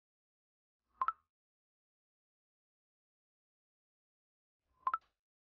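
Soft clicks sound as menu buttons are pressed.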